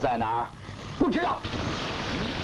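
A second man answers briefly.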